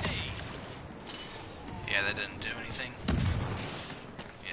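Gunfire cracks in short bursts.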